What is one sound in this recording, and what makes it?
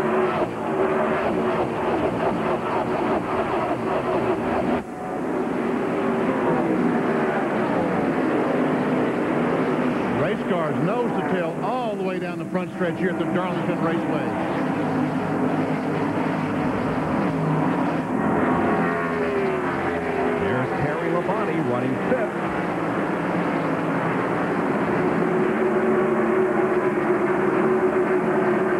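Car engines whine, rising and falling in pitch as they pass by.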